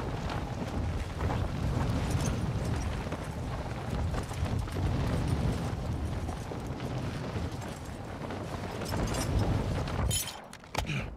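Wind rushes loudly past during a fast glide through the air.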